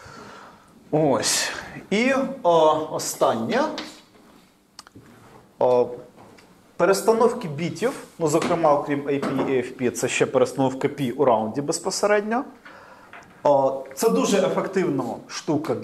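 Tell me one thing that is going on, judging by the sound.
A man speaks calmly, lecturing in a slightly echoing room.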